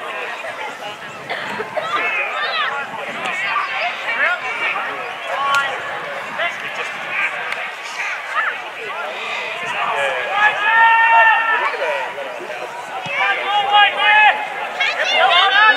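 Several men shout and call out across an open field.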